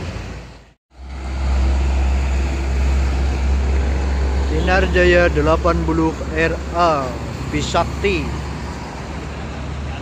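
A bus engine rumbles loudly as the bus passes close by.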